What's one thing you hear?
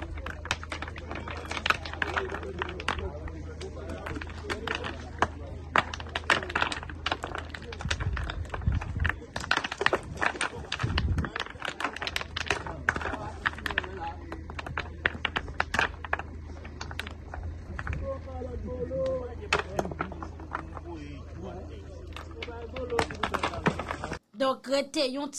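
Hammers strike stones with sharp, repeated clicks.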